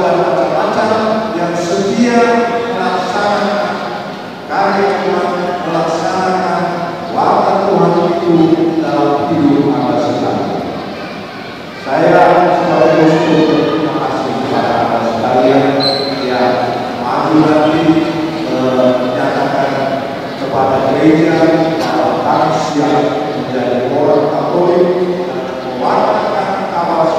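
A large congregation sings together in a large echoing hall.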